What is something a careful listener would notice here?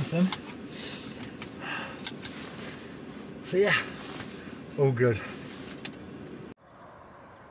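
A middle-aged man talks casually up close inside a vehicle.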